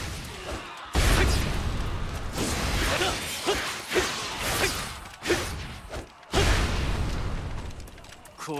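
Heavy booming blasts hit hard.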